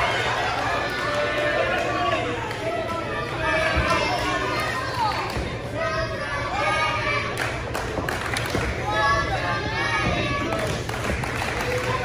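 A crowd chatters and cheers in an echoing hall.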